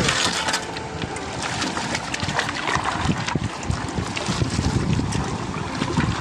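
Gravel and stones scrape and clatter against a wooden pan.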